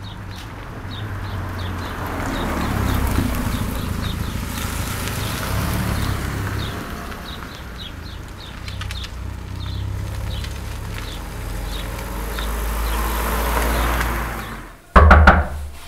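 Car engines idle and rumble as cars drive slowly past nearby.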